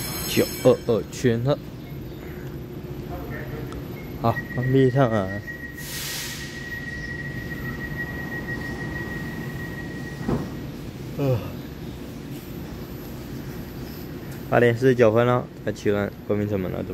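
A train's motor hums steadily at a platform.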